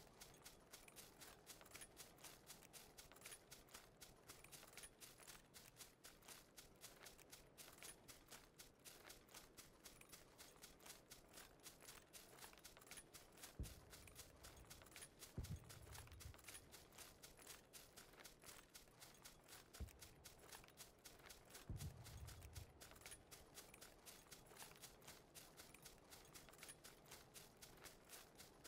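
Quick footsteps rustle through dry grass at a steady running pace.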